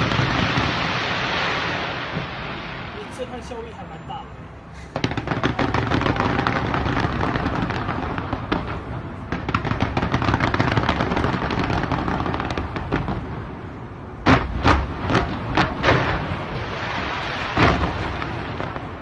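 Fireworks crackle and pop in rapid bursts far off.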